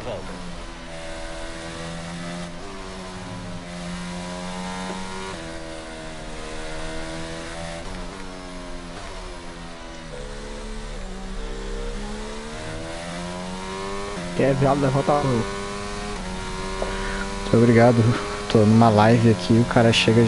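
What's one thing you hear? A racing car engine whines and shifts gears throughout.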